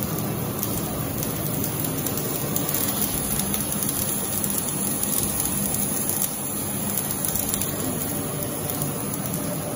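A laser cutting machine hums and hisses steadily as it cuts metal.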